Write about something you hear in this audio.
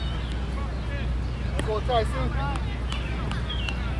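A cricket bat strikes a ball with a distant knock.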